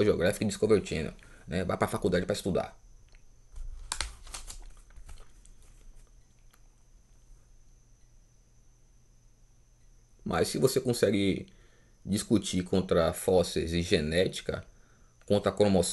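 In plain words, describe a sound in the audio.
A man speaks calmly close to the microphone.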